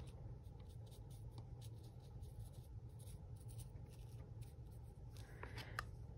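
A plastic tool scrapes lightly across textured paper.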